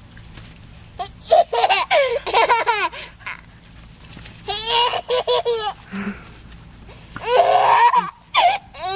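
A toddler giggles and squeals with delight close by.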